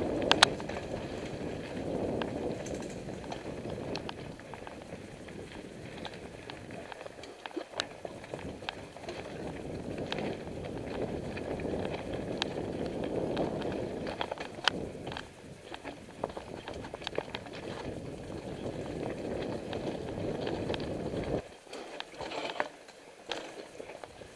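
A bicycle chain and frame rattle and click over bumps.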